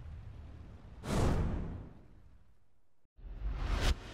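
A sharp whoosh sweeps past with a flash of light.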